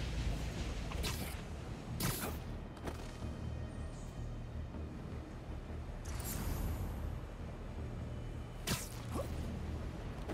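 Short sharp web shots snap and whoosh through the air.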